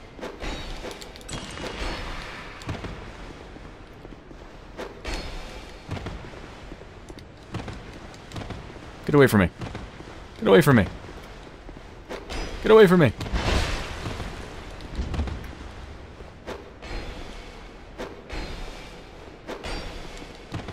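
Blades swing and strike in a fight.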